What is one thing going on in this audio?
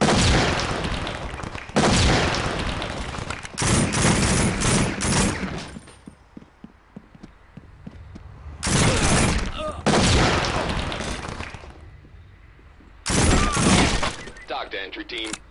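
A rifle fires in loud bursts with echoing blasts.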